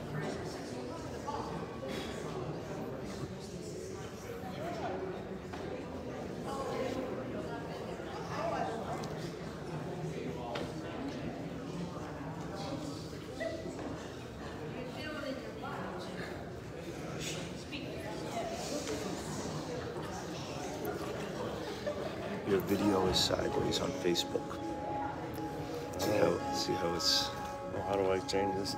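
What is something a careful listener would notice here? Several adults chat quietly nearby in an echoing hall.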